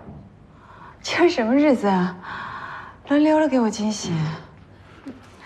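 A young woman speaks brightly and cheerfully.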